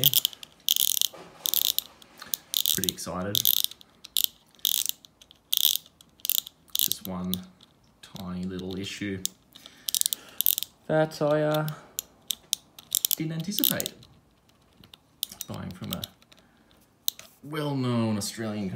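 A fishing reel's spool clicks sharply as it is turned by hand.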